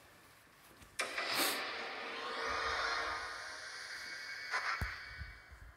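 A gloomy defeat fanfare swells and fades.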